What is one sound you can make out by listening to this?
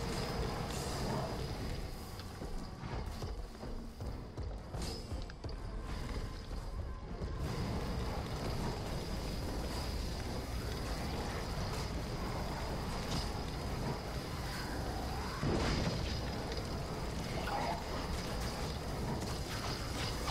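Fire roars in bursts of flame.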